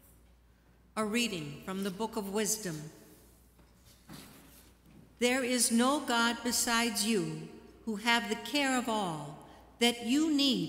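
A woman reads out through a microphone in a large echoing hall.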